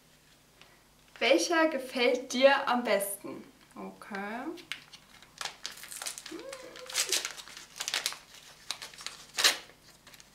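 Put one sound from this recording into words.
Plastic packaging rustles and crinkles in hands.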